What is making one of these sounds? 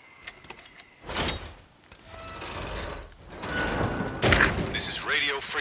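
A heavy metal hatch lid scrapes and clangs open.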